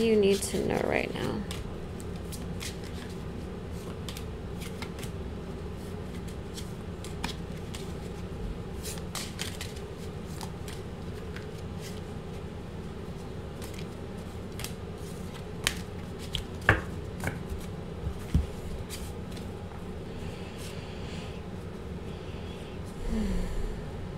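Cards shuffle between hands with soft flicking clicks.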